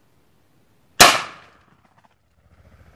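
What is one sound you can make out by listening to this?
A loud gunshot cracks close by and quickly fades.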